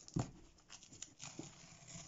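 Masking tape peels off paper.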